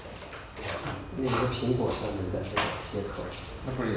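A young man answers calmly nearby.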